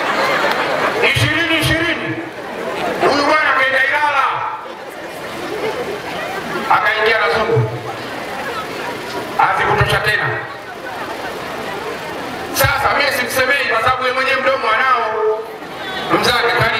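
A man speaks forcefully into a microphone through loudspeakers outdoors.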